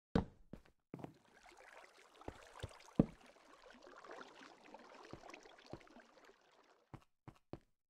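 Water flows and splashes nearby.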